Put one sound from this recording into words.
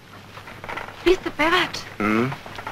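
A young woman asks a question in surprise, close by.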